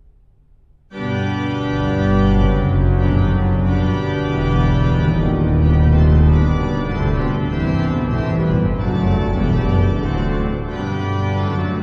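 A pipe organ plays full, rich chords loudly.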